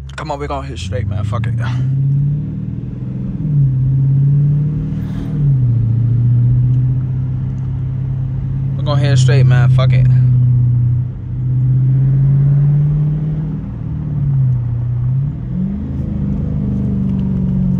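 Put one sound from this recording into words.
A car engine rumbles deeply, rising and dropping in pitch as the car speeds up and changes gear.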